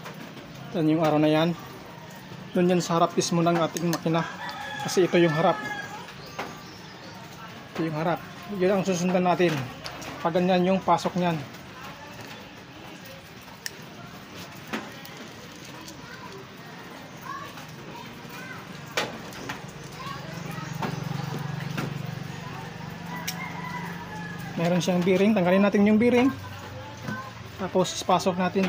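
Metal engine parts clink and click as they are handled.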